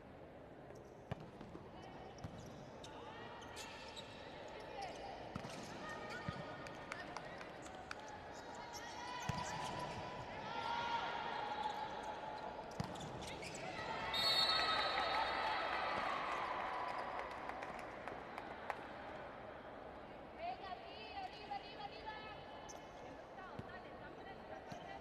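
A volleyball is struck with sharp slaps during a rally.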